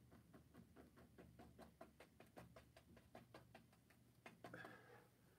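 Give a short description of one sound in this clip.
A brush taps and dabs rapidly against a canvas.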